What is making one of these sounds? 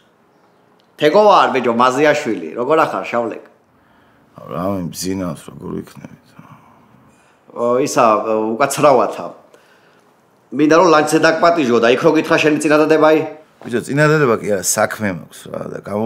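A man talks calmly on a phone, close by.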